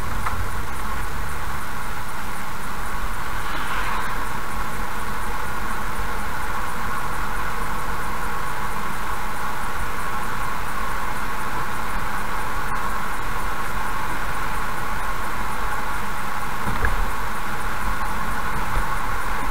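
A car engine hums steadily as it drives along a wet road.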